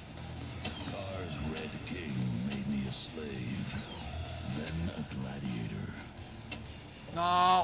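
A man talks casually into a nearby microphone.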